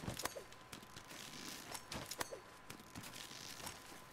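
Leafy vines rustle as a climber clambers up them.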